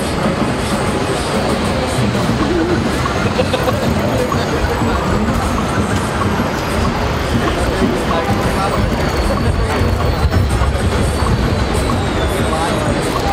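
A crowd chatters and murmurs nearby outdoors.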